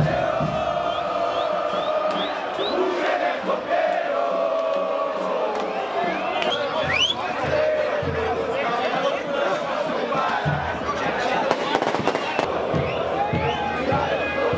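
Men in a crowd shout and cheer.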